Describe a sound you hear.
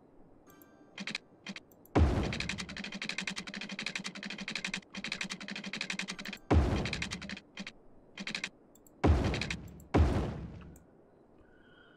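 Video game building sounds rattle in short bursts.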